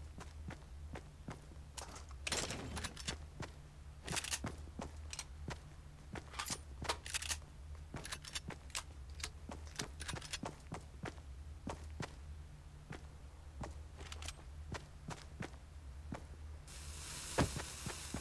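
Footsteps patter quickly and steadily across a wooden floor.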